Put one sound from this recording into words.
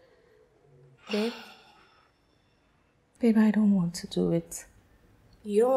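A second young woman answers softly, close by.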